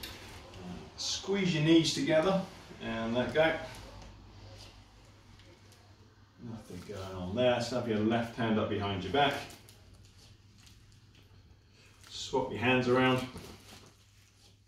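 A middle-aged man speaks calmly and clearly into a nearby microphone, explaining.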